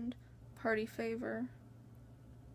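A young woman speaks briefly close to the microphone.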